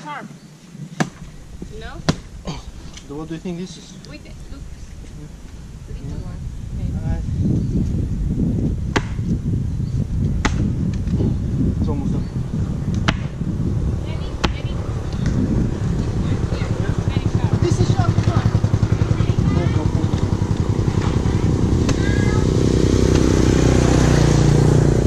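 A coconut cracks against rock with sharp knocks.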